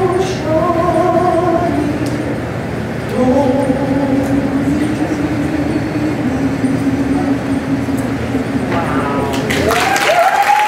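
A woman sings into a microphone, holding long notes.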